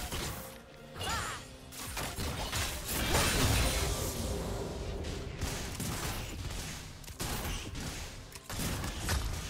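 Spell effects whoosh and clash in a game battle.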